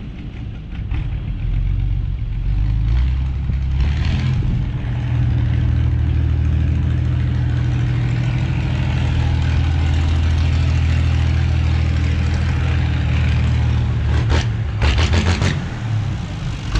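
A tractor engine rumbles steadily as the tractor drives slowly closer.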